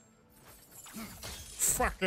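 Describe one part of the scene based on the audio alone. A burst of fire roars and whooshes.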